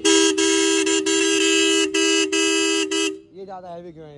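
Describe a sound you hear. A loud electric horn blares close by in long bursts with brief breaks.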